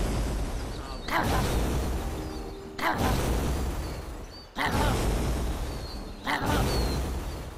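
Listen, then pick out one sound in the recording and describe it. Fire roars and crackles in bursts.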